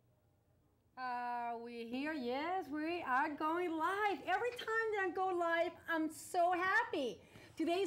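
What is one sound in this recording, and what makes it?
A woman speaks loudly and with animation.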